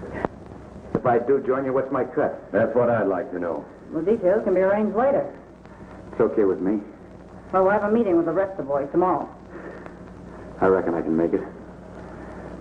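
A man speaks firmly and clearly up close.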